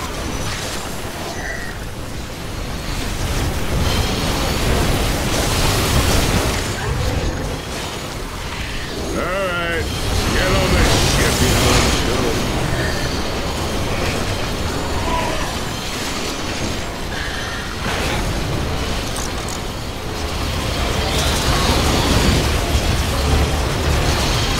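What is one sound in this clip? Laser weapons fire in rapid bursts during a battle.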